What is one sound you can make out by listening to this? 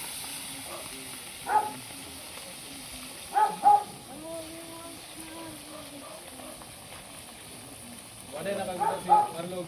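Men talk casually outdoors nearby.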